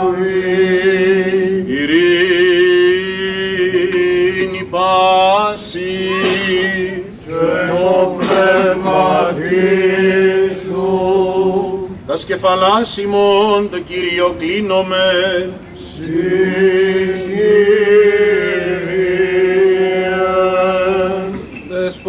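A man chants a slow, winding hymn close by.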